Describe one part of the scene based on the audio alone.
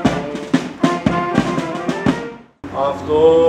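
Boots stamp in rhythm on paving stones.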